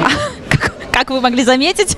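A woman speaks brightly into a microphone.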